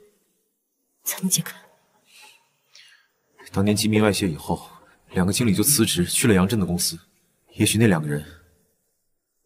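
A young man speaks in a low, calm voice, close by.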